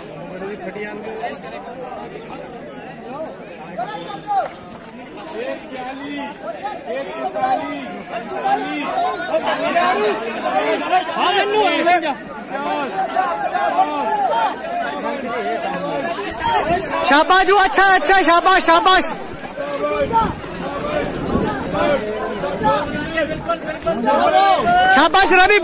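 A crowd of young men shout and cheer with excitement close by.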